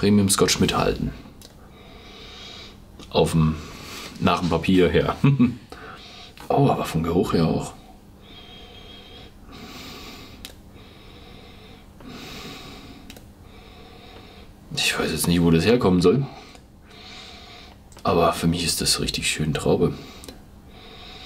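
A young man speaks calmly and close by, in short bursts between pauses.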